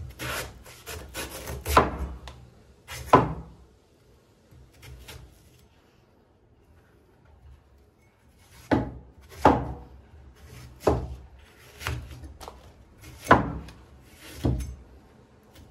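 A cleaver chops through a firm vegetable and thuds sharply onto a wooden board.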